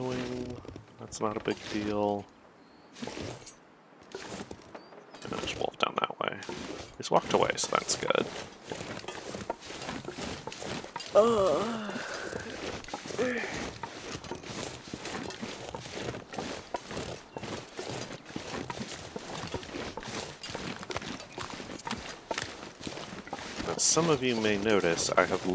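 A middle-aged man talks casually into a close microphone.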